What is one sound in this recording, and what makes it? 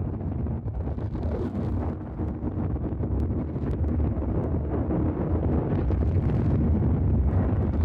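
A spaceship engine rumbles deeply and steadily, growing louder.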